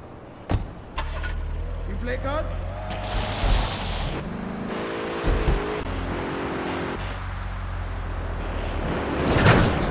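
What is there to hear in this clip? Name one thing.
A sports car engine runs as the car drives off.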